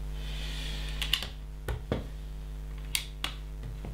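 Small plastic bricks click and clatter as hands sort through them.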